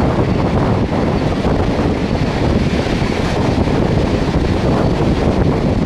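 A vehicle rumbles loudly as it moves along.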